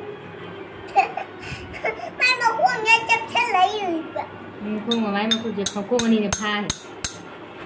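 A young child talks nearby.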